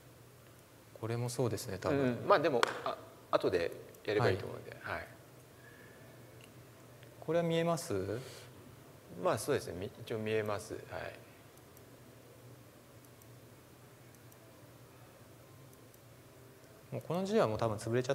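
A man speaks calmly through a microphone in a large room, pausing between phrases.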